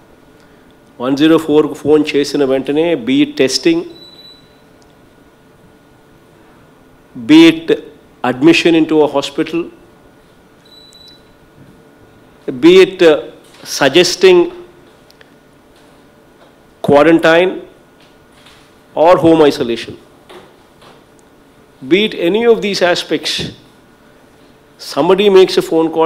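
A man speaks calmly and firmly into a microphone, in short bursts with pauses.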